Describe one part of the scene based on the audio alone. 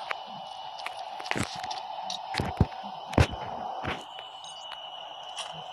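Sharp clicks and clatters sound as items are picked up one after another.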